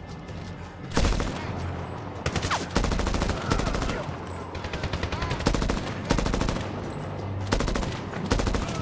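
A heavy machine gun fires in rapid, loud bursts.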